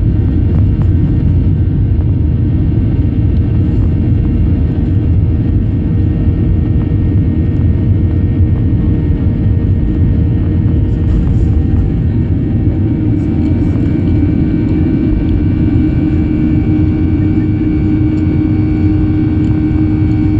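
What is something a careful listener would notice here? A jet engine roars steadily inside an aircraft cabin as the plane taxis.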